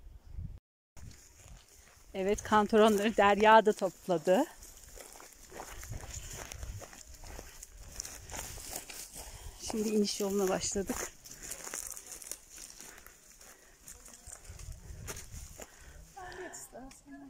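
Footsteps crunch on dry ground and pine needles.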